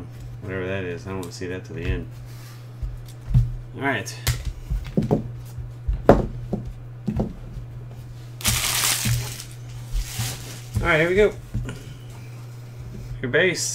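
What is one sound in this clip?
Trading cards click and tap as they are sorted by hand.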